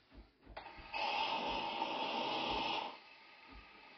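A coffee machine hisses loudly as it froths milk.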